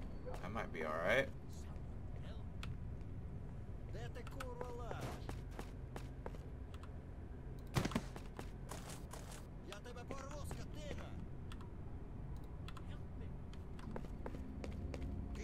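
Footsteps crunch on hard ground.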